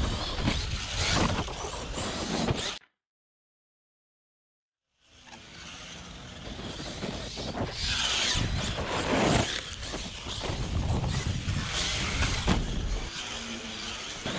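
Tyres spray and crunch over loose dirt.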